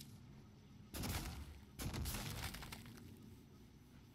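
A metal wrench smashes into objects with heavy thuds and clangs.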